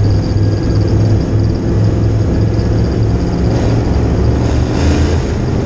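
Tyres churn and spray over a dirt track.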